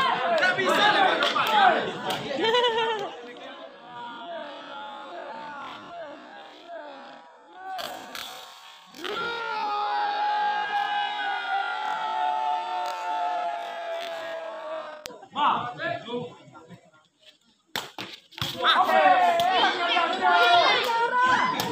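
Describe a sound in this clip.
A crowd of spectators shouts and cheers excitedly outdoors.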